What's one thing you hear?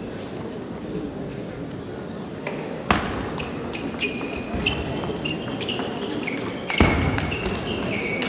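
A ball clicks back and forth on a table tennis table and paddles.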